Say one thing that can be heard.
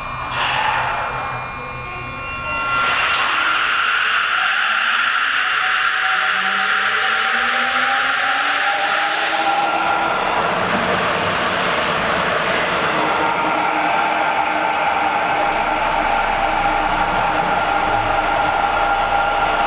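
A subway train hums and rumbles as it pulls out of an underground station.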